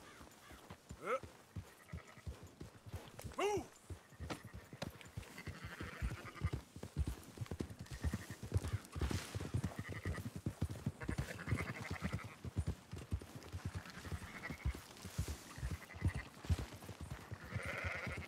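Horse hooves thud steadily on soft ground as a horse gallops.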